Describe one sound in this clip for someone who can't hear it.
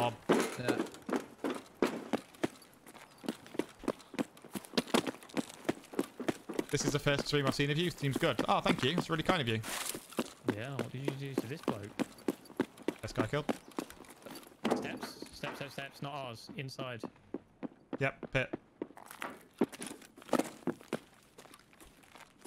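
Footsteps crunch quickly on gravel and concrete.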